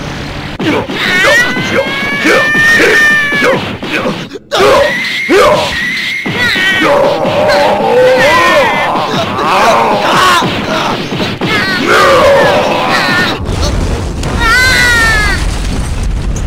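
A young man screams with effort.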